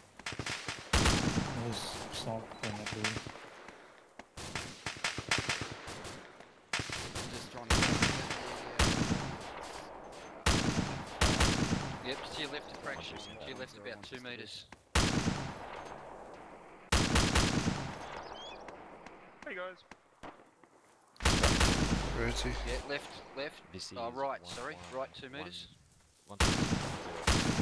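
Loud gunshots crack and echo, again and again.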